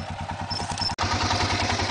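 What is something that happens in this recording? A quad bike engine revs louder.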